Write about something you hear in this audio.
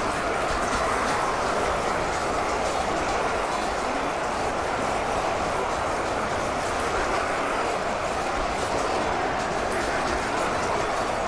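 A stream of water flows and rushes steadily nearby.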